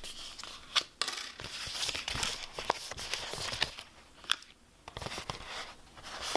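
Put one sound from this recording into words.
Paper sheets rustle and crinkle close by as they are handled.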